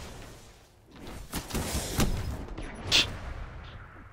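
Loud blasts and gunfire erupt in a video game.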